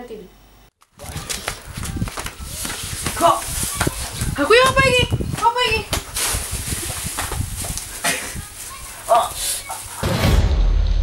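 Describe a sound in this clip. Men grunt and shout while scuffling.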